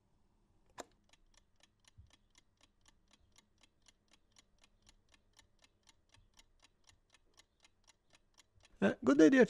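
A mechanical chess clock ticks steadily and quickly.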